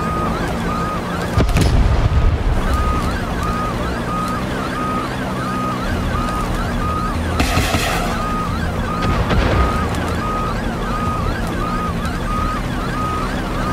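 A helicopter's engine drones steadily.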